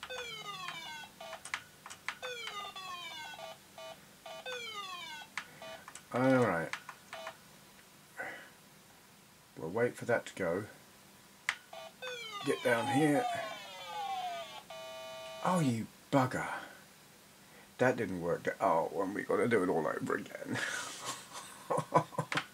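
Electronic video game beeps and falling tones play in quick bursts.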